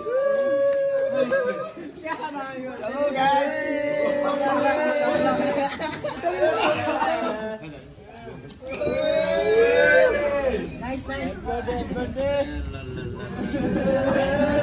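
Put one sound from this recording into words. A group of young men sing together loudly, close by.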